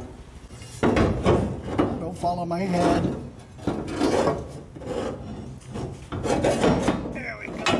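A plastic panel creaks and clicks as hands press it into place.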